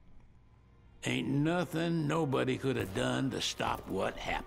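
An older man answers in a deep, gruff voice.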